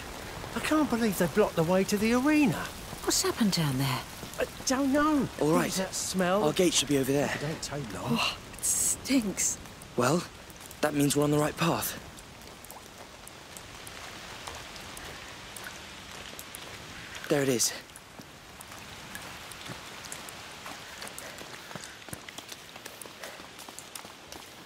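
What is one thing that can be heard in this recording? Footsteps patter on a stone path.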